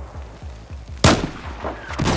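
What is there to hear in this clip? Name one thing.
A sniper rifle fires a single loud, sharp shot.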